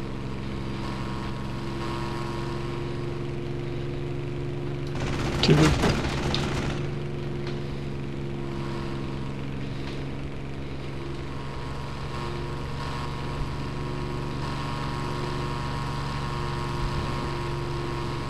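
A propeller aircraft engine drones steadily.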